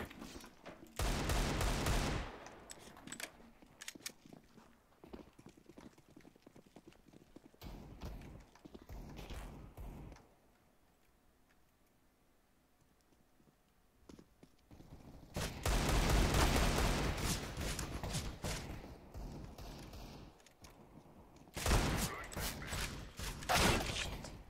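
Pistol shots crack in quick bursts.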